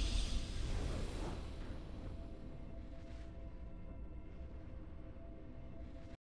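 A triumphant game fanfare rings out and slowly fades.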